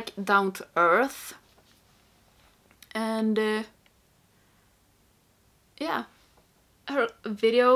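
A young woman talks close to a microphone with animation, in short bursts.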